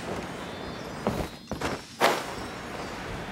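A young man speaks into a close microphone.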